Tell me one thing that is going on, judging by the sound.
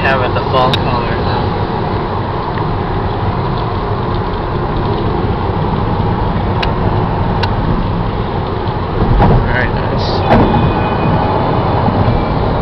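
Road noise rumbles steadily from inside a moving car on a highway.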